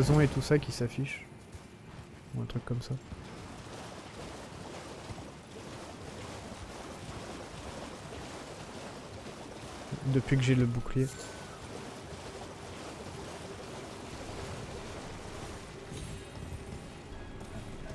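A horse's hooves clop on hard ground.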